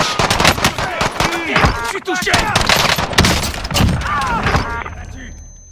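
Rapid gunshots crack loudly.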